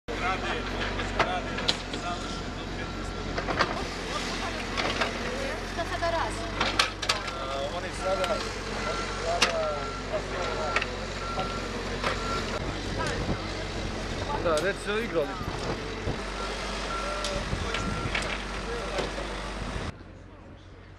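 A woman talks nearby outdoors.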